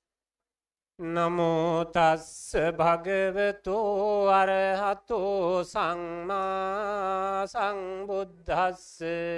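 An elderly man chants through a microphone and loudspeaker.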